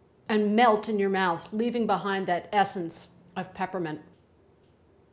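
A middle-aged woman speaks calmly and clearly, close to a microphone.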